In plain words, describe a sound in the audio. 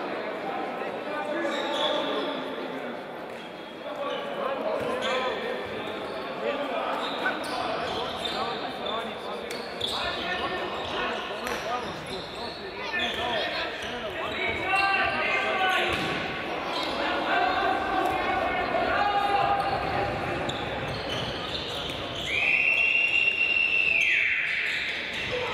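Shoes squeak on a wooden floor.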